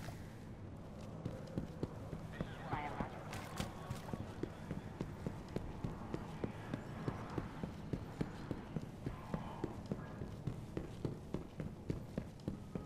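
Footsteps run quickly and steadily on hard ground.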